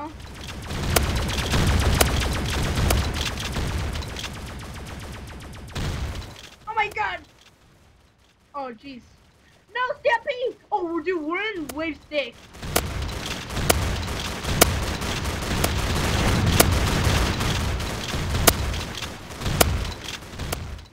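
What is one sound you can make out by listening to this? A shotgun fires in repeated blasts.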